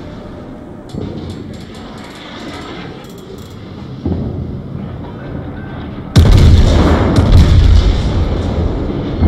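Naval guns fire with deep booming blasts.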